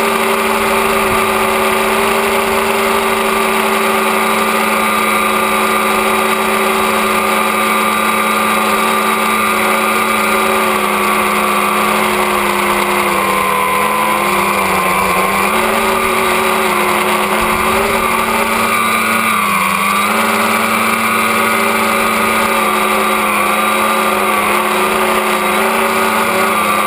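Drone propellers whine loudly and steadily up close, the pitch dipping and rising now and then.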